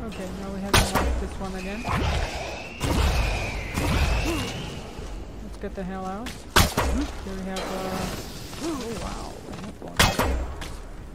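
Gunshots crack now and then.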